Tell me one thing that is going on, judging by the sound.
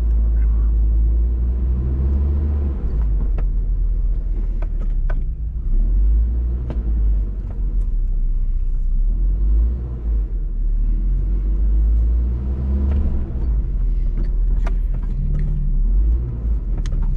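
A vehicle engine rumbles low and steady, close by.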